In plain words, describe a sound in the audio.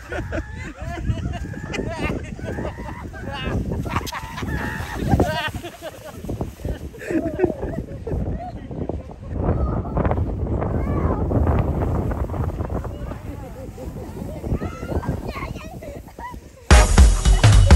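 A sled scrapes and hisses over packed snow.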